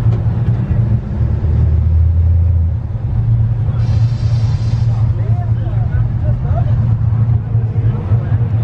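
A car engine rumbles loudly and steadily up close.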